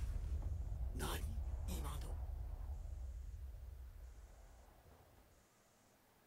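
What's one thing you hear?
A deep rumble rolls and slowly fades.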